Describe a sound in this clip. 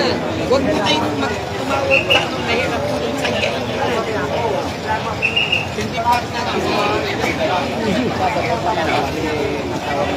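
A crowd of men talks and shouts loudly nearby, outdoors.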